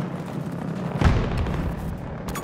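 An explosion booms heavily in the distance.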